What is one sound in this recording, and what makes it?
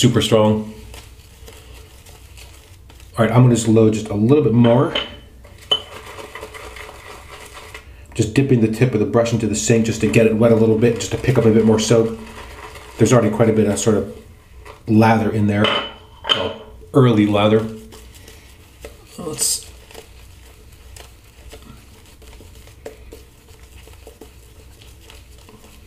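A shaving brush swishes softly against stubble.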